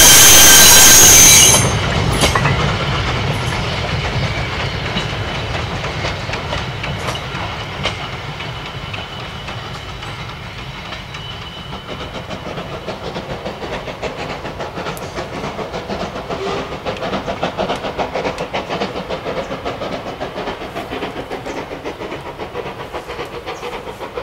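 A steam locomotive chuffs hard as it climbs away into the distance.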